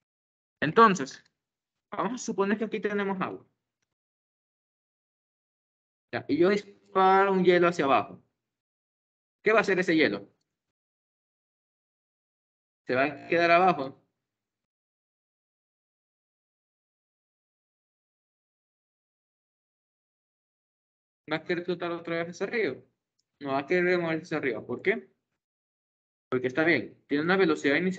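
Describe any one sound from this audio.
A young man speaks calmly in bursts over an online call.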